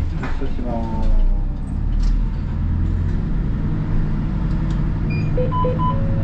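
A bus rattles and creaks as it rolls along.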